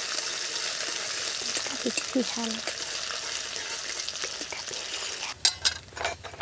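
Oil sizzles loudly in a pan.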